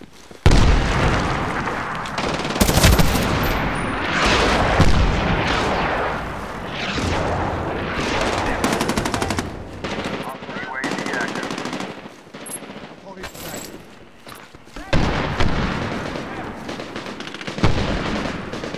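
A rifle fires loud, booming shots that echo away.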